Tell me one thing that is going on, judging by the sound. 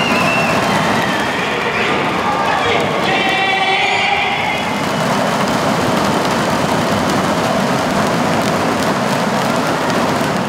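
Inflatable noise sticks bang together in a crowd.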